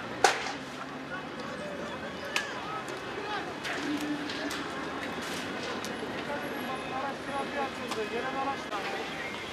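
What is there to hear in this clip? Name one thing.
A bus engine rumbles as the bus drives past on a road.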